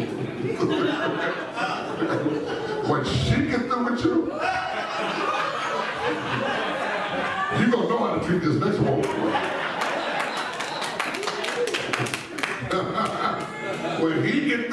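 A man preaches with animation through a microphone in a large echoing hall.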